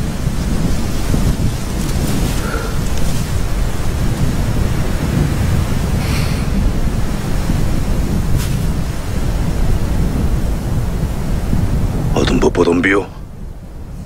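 Wind gusts loudly across open grassland.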